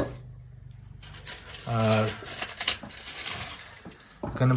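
Aluminium foil crinkles as it is peeled back.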